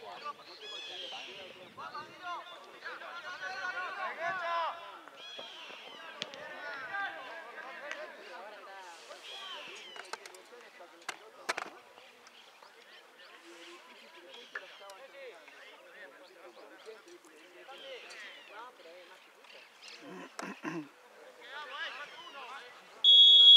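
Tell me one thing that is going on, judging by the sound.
Young male players shout and call to each other across an open field.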